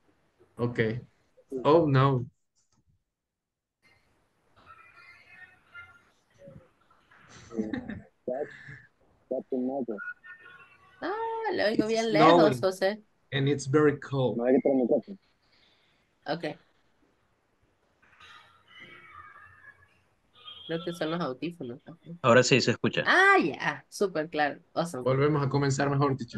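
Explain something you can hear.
A man speaks through an online call, in short bursts with pauses.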